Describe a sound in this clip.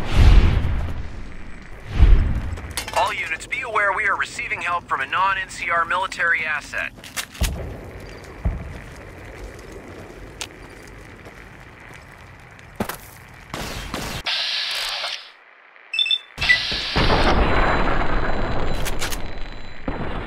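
Rifle shots crack loudly, one after another.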